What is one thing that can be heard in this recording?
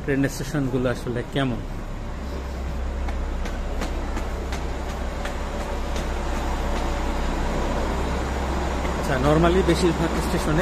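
Footsteps climb hard stone stairs.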